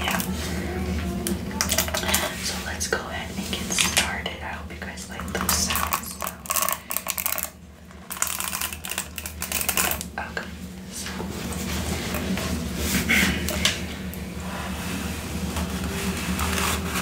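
A brush scratches and crackles through hair close to a microphone.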